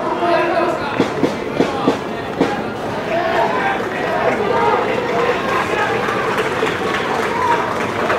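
A large crowd of spectators chants and cheers outdoors.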